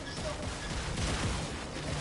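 A gunshot fires in a video game.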